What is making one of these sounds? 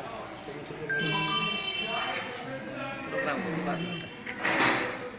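A man sings a melodic phrase nearby.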